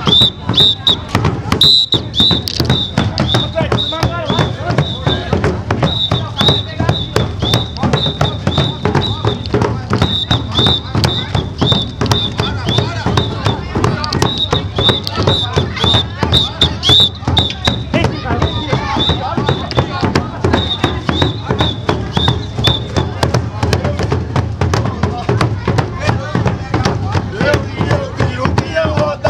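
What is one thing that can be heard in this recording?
Several large bass drums pound a fast, driving rhythm outdoors, beaten with sticks.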